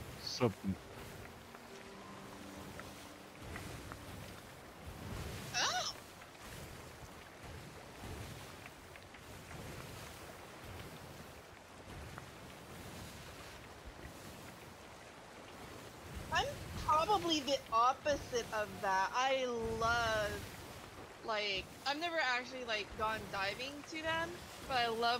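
Ocean waves wash against a ship's hull.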